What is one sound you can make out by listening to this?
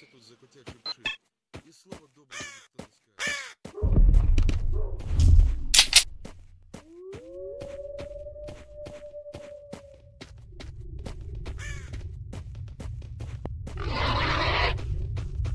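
Footsteps crunch through grass and brush.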